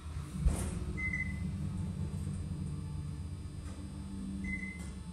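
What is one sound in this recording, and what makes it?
A lift chime beeps briefly twice.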